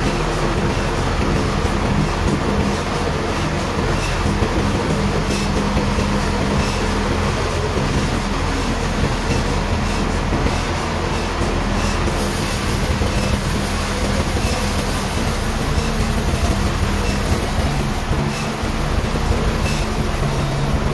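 A large machine drones steadily throughout.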